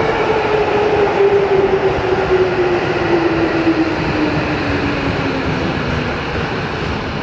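A train's motor whines, falling in pitch as the train slows.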